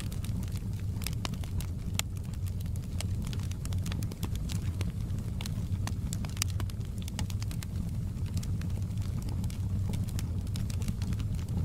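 Burning logs crackle and pop throughout.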